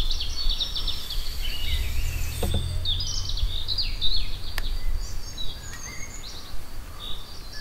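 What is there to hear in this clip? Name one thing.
A rope rubs and slides softly over a metal bar.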